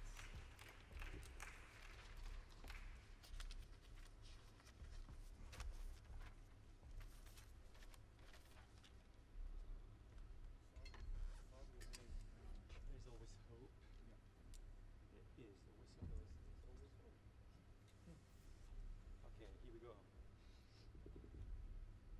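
A double bass plucks a walking line.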